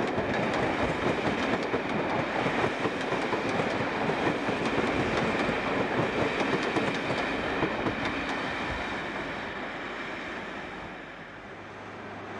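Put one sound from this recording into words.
A train rolls slowly past under a station roof, its wheels clattering on the rails.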